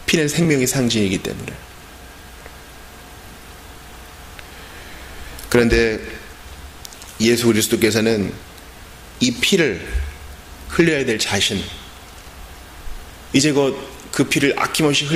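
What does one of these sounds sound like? A man preaches through a microphone in a slow, deliberate voice, with long pauses in an echoing room.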